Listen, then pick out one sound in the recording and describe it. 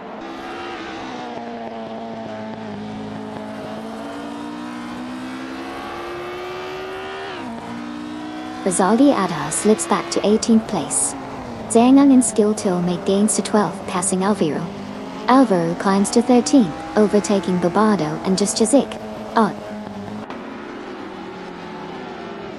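A racing car engine whines at high revs, rising in pitch and dropping as the gears change.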